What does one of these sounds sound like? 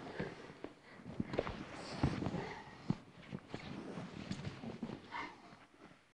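Shoes squeak on a mat.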